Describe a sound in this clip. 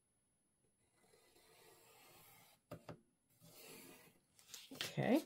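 A pencil scratches steadily across paper.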